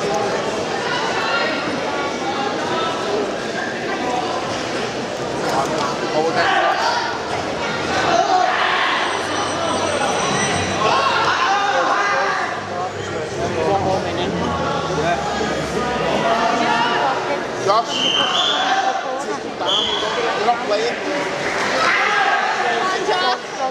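A crowd murmurs and chatters throughout a large echoing hall.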